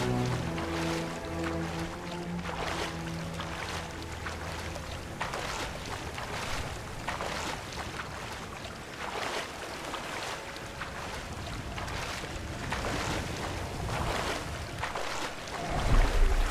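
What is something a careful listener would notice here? Water splashes rhythmically with swimming strokes.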